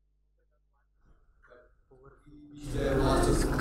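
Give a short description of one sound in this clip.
A man speaks to a room in a raised voice.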